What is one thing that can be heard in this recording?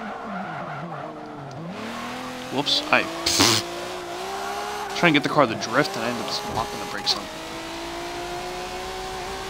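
A racing car engine revs hard and climbs through the gears.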